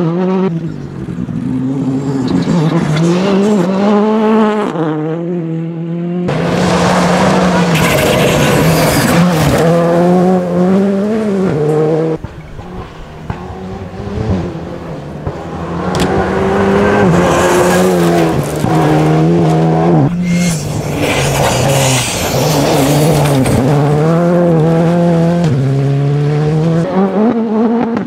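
Rally car engines roar loudly, revving up and down as cars speed past.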